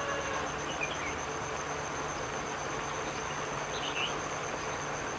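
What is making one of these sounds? A small bird chirps a few short notes.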